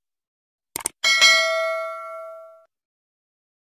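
A bell chimes once and rings out.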